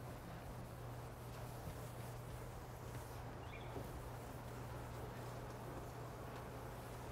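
A felt eraser rubs across a chalkboard.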